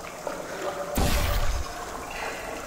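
A sci-fi gun fires with a loud whooshing burst.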